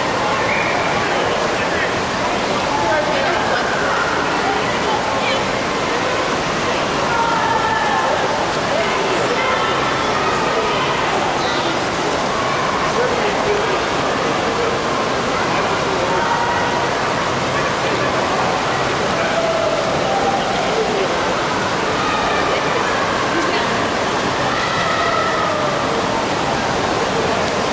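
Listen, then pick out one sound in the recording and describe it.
Water splashes and laps in a pool.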